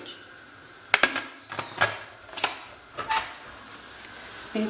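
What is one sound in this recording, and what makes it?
A metal lid clanks as it locks onto a pot.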